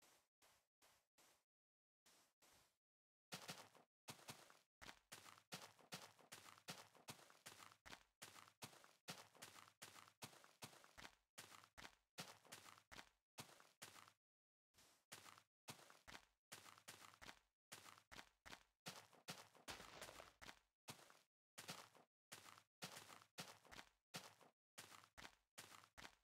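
Footsteps crunch steadily on grass and sand.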